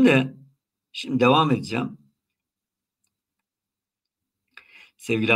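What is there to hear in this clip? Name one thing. An elderly man speaks calmly and closely into a microphone, pausing between phrases.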